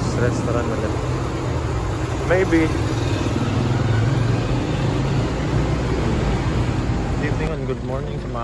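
A motorcycle engine hums steadily nearby, echoing in a large enclosed space.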